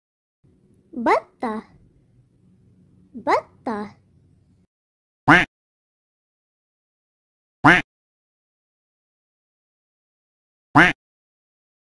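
A duck quacks several times.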